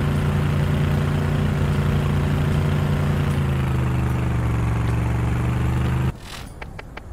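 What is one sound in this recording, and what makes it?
A vehicle engine drones loudly and steadily.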